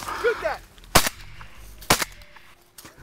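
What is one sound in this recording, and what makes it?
A shotgun fires with sharp, loud bangs.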